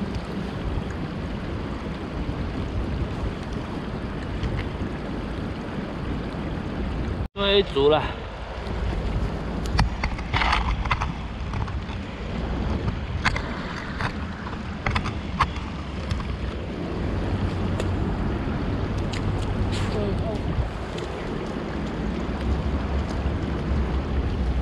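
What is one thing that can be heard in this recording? Wind rumbles steadily outdoors, buffeting the microphone.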